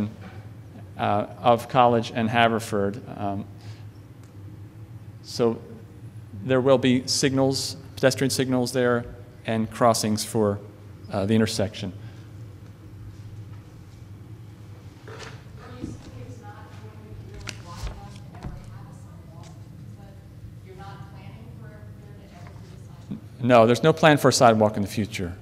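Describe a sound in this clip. A man speaks through a microphone in a large hall, pausing now and then.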